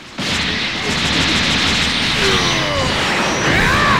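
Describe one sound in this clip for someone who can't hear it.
A rushing energy aura hums and surges.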